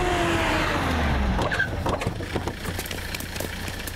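Car doors open.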